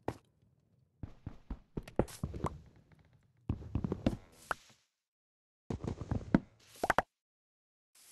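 Blocks of wood crack and thud as they are broken.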